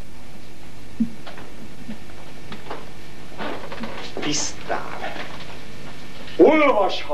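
A man speaks dramatically and then sings out loudly in a full voice.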